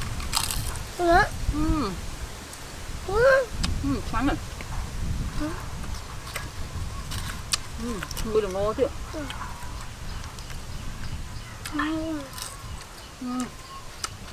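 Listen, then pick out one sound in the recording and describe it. A woman chews crunchy food close by.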